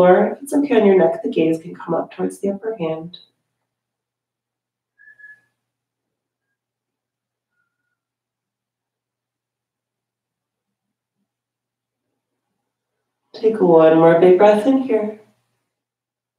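A woman speaks calmly and clearly, as if into a microphone.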